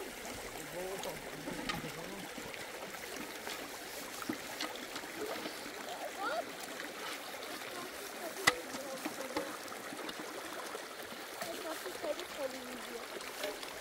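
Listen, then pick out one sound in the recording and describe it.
A stream of shallow water trickles over stones.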